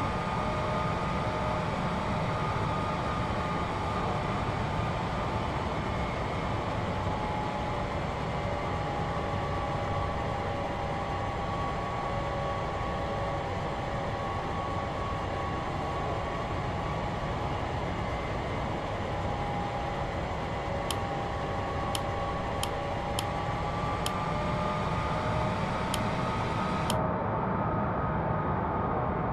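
Jet engines roar steadily with a high whine.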